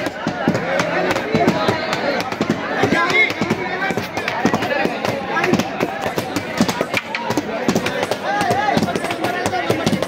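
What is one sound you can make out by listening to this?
Wooden sticks strike a padded shield with sharp thuds.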